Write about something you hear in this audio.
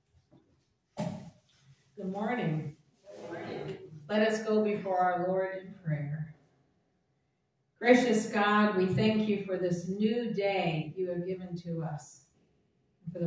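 A middle-aged woman speaks calmly into a microphone in a quiet echoing room.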